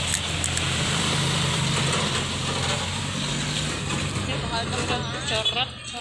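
A dump truck drives along an asphalt street.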